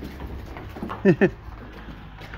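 A calf bleats briefly.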